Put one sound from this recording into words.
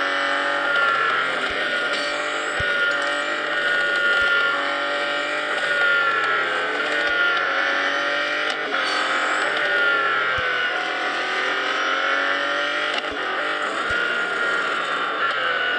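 A racing car engine roars at high speed, its pitch rising and dipping as it shifts gears.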